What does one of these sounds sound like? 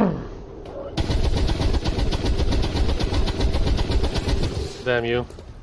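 A heavy machine gun fires a long rapid burst.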